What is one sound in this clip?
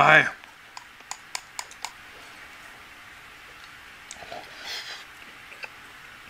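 A man chews and slurps food softly.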